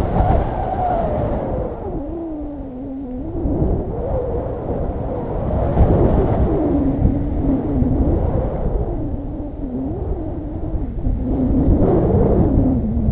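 Wind rushes and buffets a microphone.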